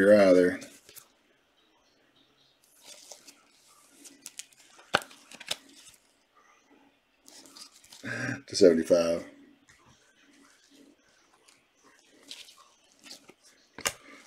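Trading cards slide and rustle against each other in gloved hands.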